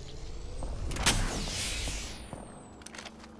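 A burst of energy whooshes as the device is used.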